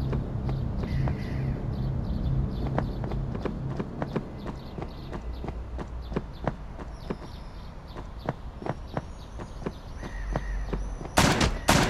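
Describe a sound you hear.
Quick footsteps patter steadily on hard ground.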